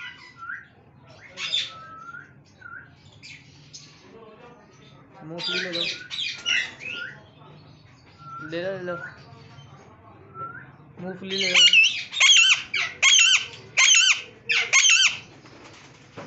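A parrot squawks and chatters loudly up close.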